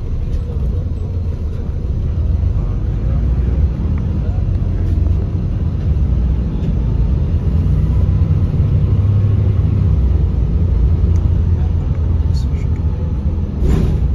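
A city bus drives along, its engine and tyres rumbling inside the cabin.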